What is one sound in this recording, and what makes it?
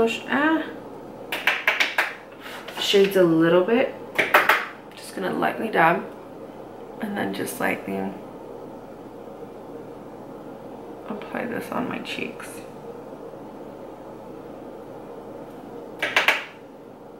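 A young woman talks calmly and closely into a microphone.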